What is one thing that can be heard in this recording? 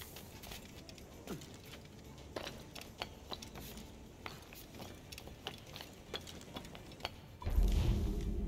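Footsteps patter quickly across roof tiles.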